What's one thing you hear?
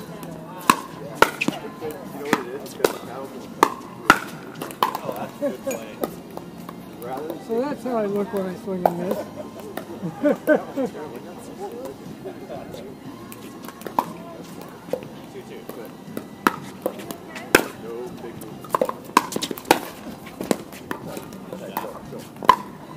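Paddles pop sharply against a plastic ball in a quick back-and-forth rally, outdoors.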